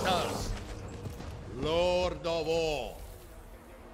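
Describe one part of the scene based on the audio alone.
A young man speaks calmly and close into a microphone.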